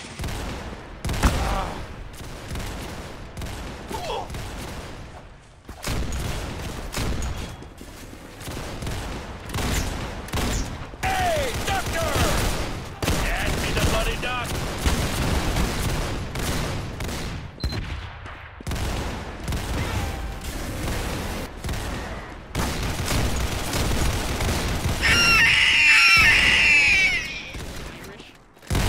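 Gunshots fire in single sharp cracks.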